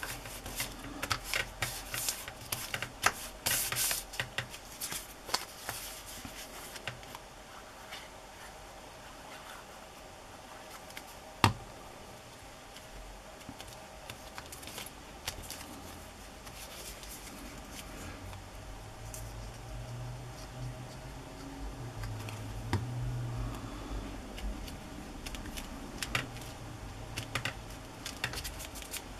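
Paper rustles and crinkles as hands press and smooth it.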